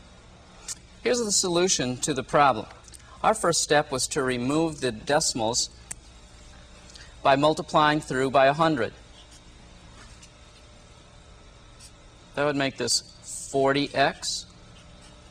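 A man speaks calmly and clearly into a microphone.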